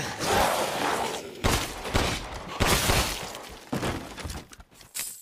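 Pistol shots bang in quick succession.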